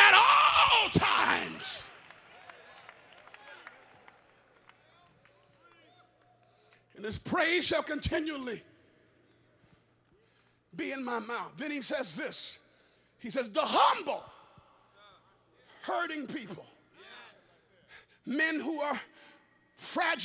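A man preaches with animation through a microphone in a large echoing hall, in short bursts.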